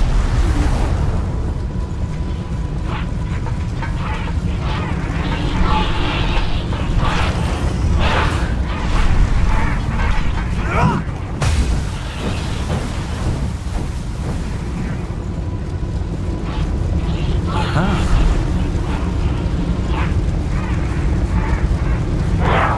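Footsteps scrape on stone.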